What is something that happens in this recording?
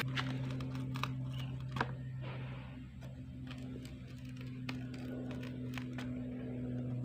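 A metal punch taps lightly on a wooden board.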